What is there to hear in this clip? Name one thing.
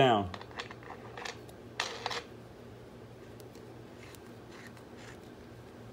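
A wrench clicks as a lug nut is tightened.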